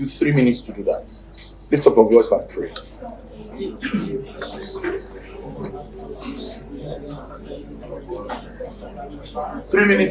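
A middle-aged man speaks with animation into a clip-on microphone.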